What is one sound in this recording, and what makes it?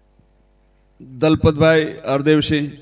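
A middle-aged man speaks loudly and with animation through a microphone.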